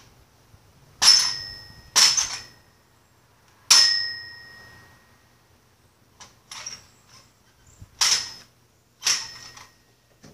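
Sharp toy blaster shots snap close by, ringing briefly.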